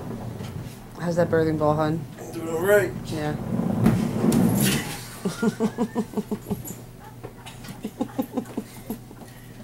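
A young man talks and laughs playfully nearby.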